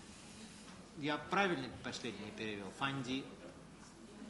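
A man speaks loudly and with animation close to a microphone in a room.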